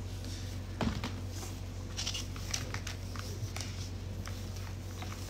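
Cables and a plastic bag rustle and click in someone's hands.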